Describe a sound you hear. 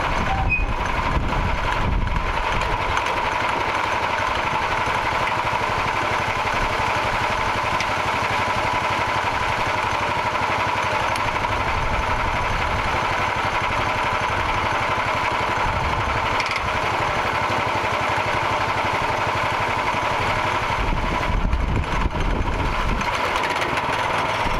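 A sawmill engine drones steadily.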